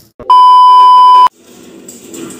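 A steady high test tone beeps briefly.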